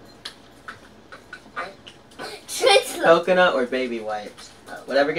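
A young boy laughs loudly.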